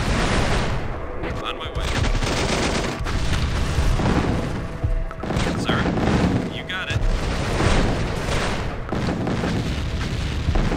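Gunfire crackles in a battle.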